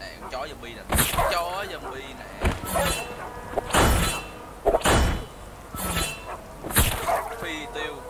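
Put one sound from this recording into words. Blades slash and strike with sharp thuds.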